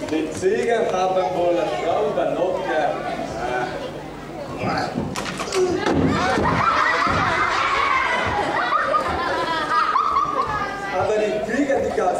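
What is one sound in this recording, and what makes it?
A man speaks loudly and theatrically, heard through a microphone in a large hall.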